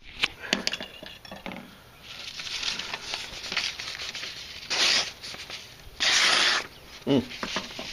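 A knife blade slices through sheets of paper with a crisp rustle.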